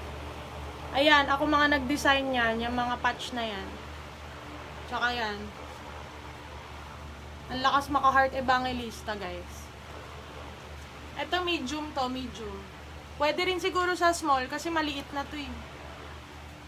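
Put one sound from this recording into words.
A young woman talks close to a microphone, explaining with animation.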